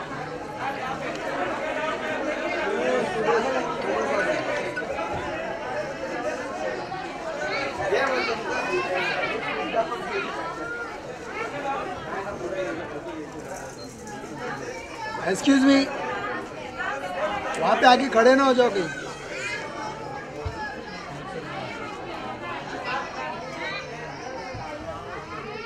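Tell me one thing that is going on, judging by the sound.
A crowd of people chatter and call out nearby.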